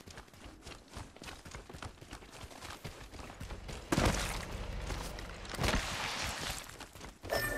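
Footsteps run quickly over grass and rock.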